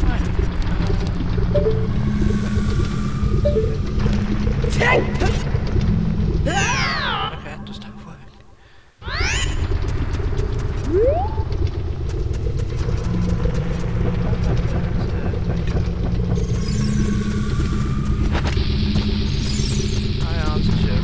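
Lava rumbles and bubbles with a deep, steady roar.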